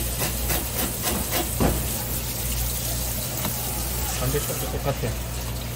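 Water runs from a hose and splashes onto a wet surface.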